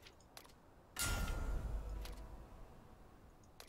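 A game menu plays a short whooshing sound as a skill unlocks.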